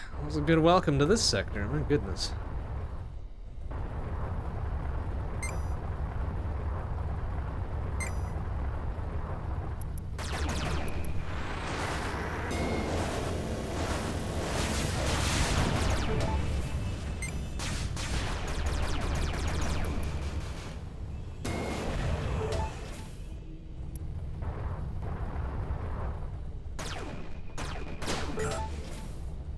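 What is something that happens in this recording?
A spaceship engine roars steadily.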